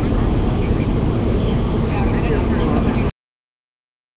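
A crowd shouts and chatters loudly outdoors nearby.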